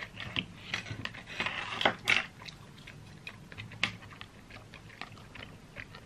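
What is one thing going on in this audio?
A plastic lid clicks off a small sauce cup.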